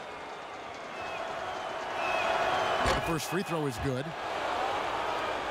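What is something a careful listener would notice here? A crowd cheers loudly and then settles.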